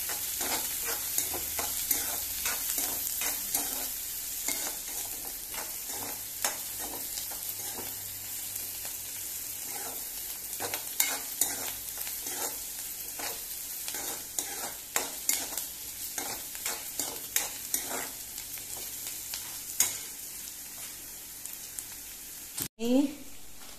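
Onions and peppers sizzle in hot oil.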